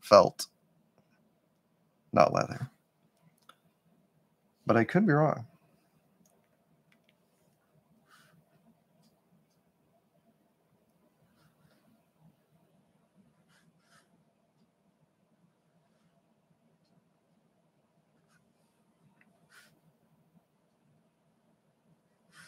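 A brush strokes softly across paper.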